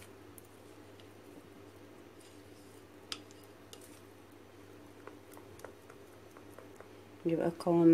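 A spoon scrapes and clicks against a bowl while stirring a thick mixture.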